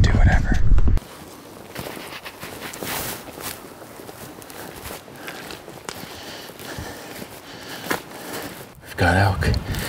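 Boots crunch on loose gravel.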